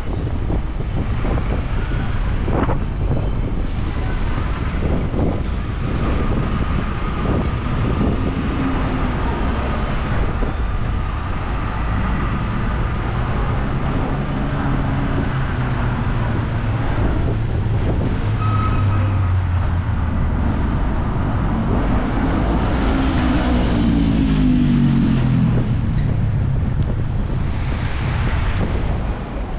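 City traffic rumbles steadily on a street outdoors.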